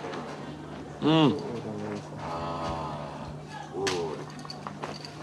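A man murmurs with pleasure.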